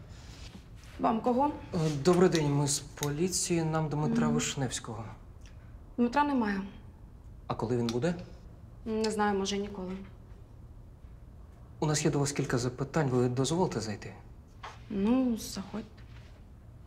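A young woman speaks calmly and close by.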